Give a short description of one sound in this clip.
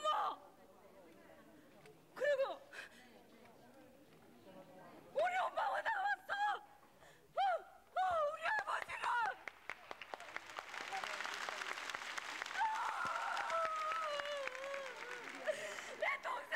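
A middle-aged woman sobs and wails loudly, close by.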